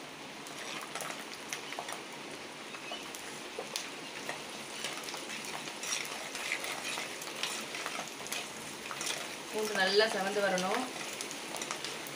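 A metal ladle scrapes and clinks against a clay pot.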